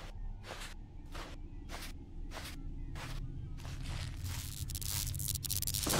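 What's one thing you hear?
Footsteps swish steadily through tall grass.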